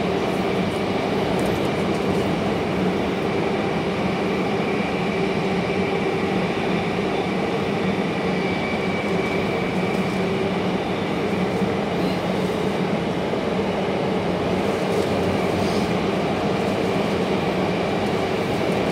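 A train car hums and rumbles steadily.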